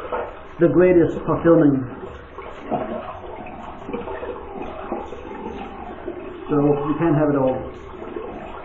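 A middle-aged man speaks close up.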